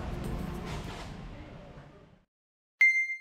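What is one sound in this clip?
Bare feet pad softly across a floor mat.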